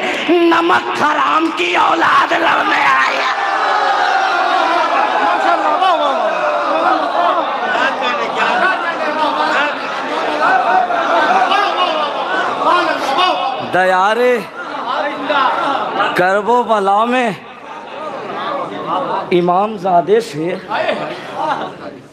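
A young man recites loudly and melodiously into a microphone over loudspeakers.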